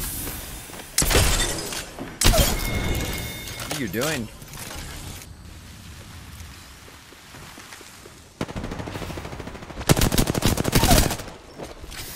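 Automatic gunfire rattles in quick, loud bursts.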